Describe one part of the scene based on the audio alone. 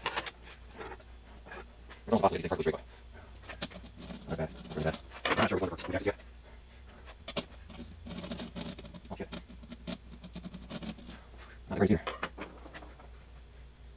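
A cloth wipes across a glass surface.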